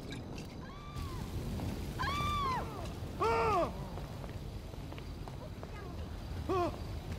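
A fire bursts into flame with a whooshing roar.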